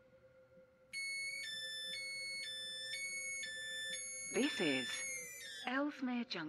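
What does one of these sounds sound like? A train's door alarm beeps in a repeating two-tone pattern.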